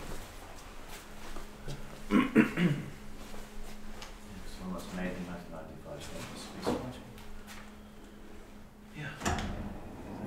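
An elevator hums steadily with a low tone.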